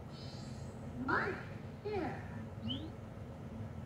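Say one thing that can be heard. A small cartoon creature chirps in short, high, sliding squeaks.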